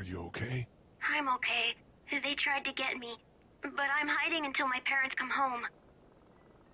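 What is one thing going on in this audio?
A young girl speaks through a walkie-talkie.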